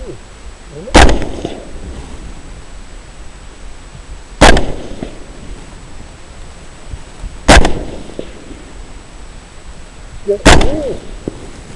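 A rifle fires loud single shots close by, each one echoing briefly.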